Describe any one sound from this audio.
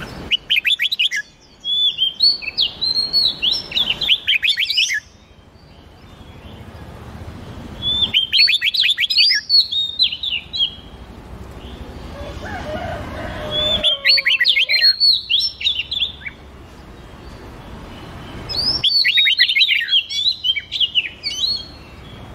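A songbird sings loud, rapid, whistling phrases in bursts with short pauses between them.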